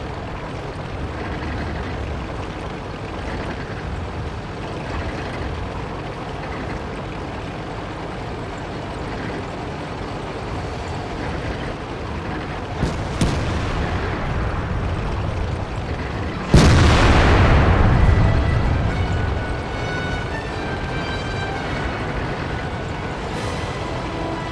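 A tank engine rumbles steadily as the tank drives over sand.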